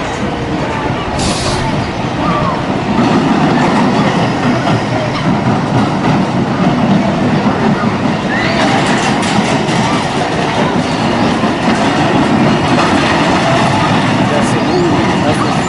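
Riders scream and shout.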